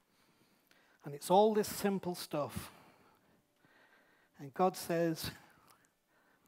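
A man speaks through a microphone in a large hall, with pauses.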